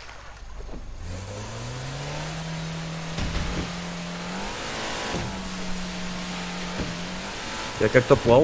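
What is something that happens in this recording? A motorboat engine revs up and roars steadily.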